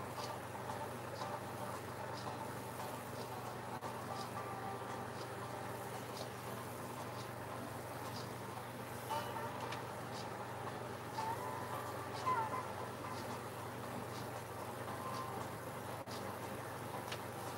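A paintbrush dabs and brushes softly against a canvas.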